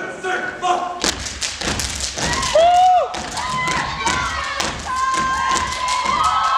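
Dancers stomp and shuffle their feet on a stage.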